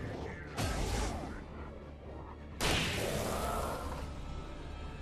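A shotgun fires loud blasts that echo and fade.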